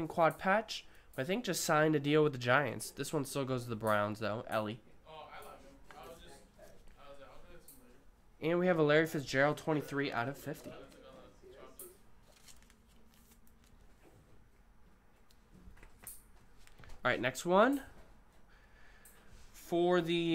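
Card sleeves and packs rustle and click in hands.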